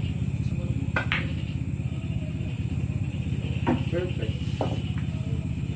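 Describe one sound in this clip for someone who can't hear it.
Pool balls click sharply against each other.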